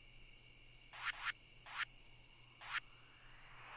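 Soft game menu blips sound as a cursor moves over items.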